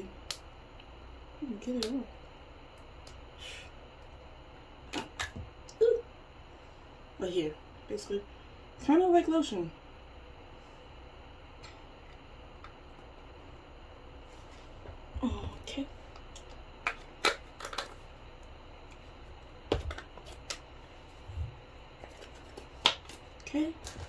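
A lid clicks and scrapes on a small jar.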